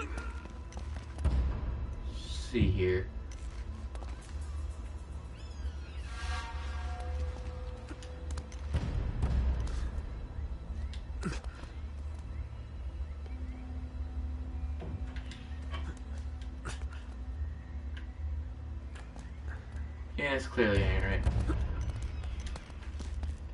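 Footsteps thud on stone.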